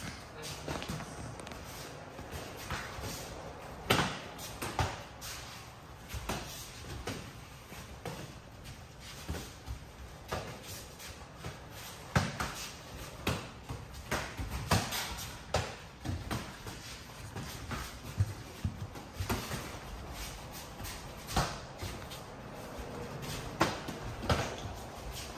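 Padded gloves thump on pads and gloves in quick bursts.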